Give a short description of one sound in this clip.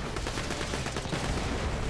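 An energy gun fires with a crackling electric zap.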